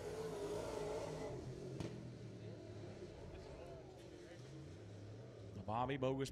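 A race car engine roars loudly as the car speeds past.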